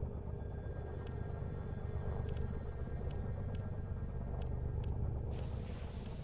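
Short electronic clicks sound as menu items are selected.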